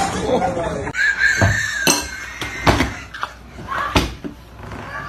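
A woman screams loudly and wildly close by.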